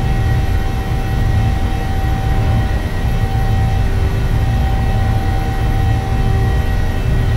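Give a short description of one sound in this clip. A jet engine hums steadily with a low rumble.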